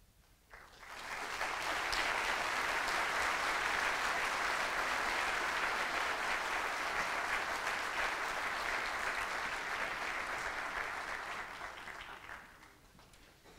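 A concert band plays loudly in a large echoing hall, then fades away.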